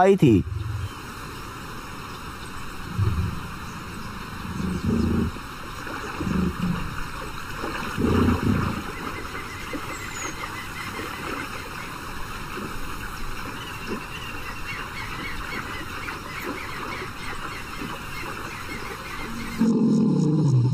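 Water rushes and splashes over rapids.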